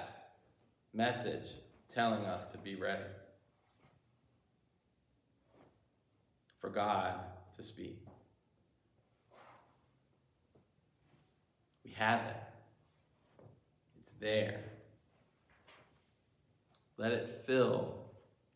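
A middle-aged man speaks calmly and deliberately, with pauses, in a room with a slight echo.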